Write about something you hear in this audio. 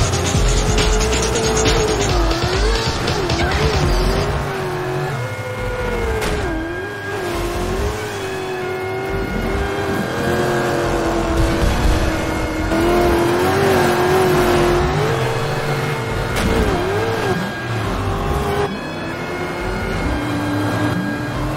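Off-road racing engines roar and rev up and down.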